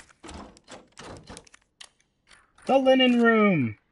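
A key turns in a lock with a click.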